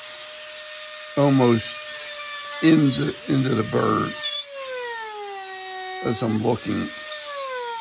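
A small electric pen tool hums faintly against wood.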